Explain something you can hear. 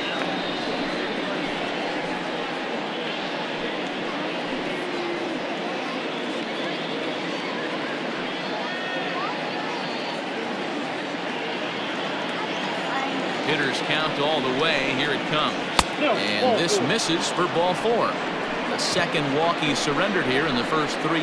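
A large stadium crowd murmurs and cheers steadily.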